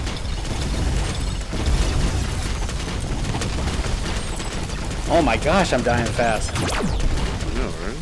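Explosions burst with a crackle of sparks.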